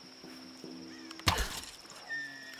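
A bowstring snaps as an arrow is loosed.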